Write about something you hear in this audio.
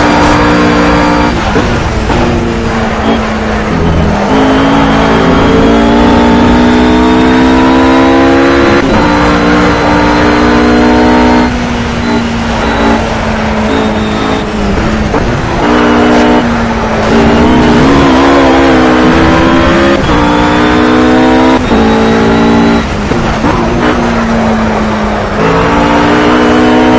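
A GT3 race car engine in a racing game revs hard and shifts up and down through the gears.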